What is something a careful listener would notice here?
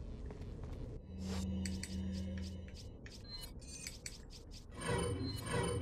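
Short electronic menu clicks sound in quick succession.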